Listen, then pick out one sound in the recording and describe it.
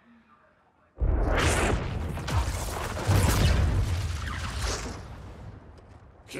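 A loud explosion bursts and rumbles away.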